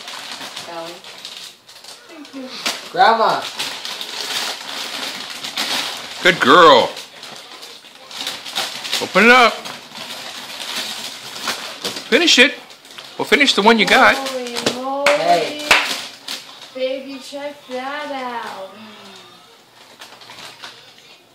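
Wrapping paper rustles and crinkles as it is torn open.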